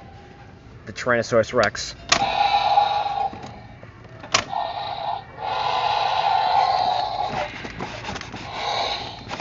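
A toy dinosaur plays a loud electronic roar.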